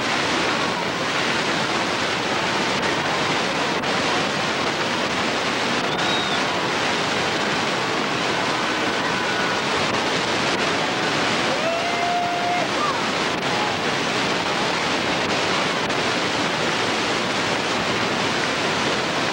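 A crowd of young men chatter and call out to each other outdoors.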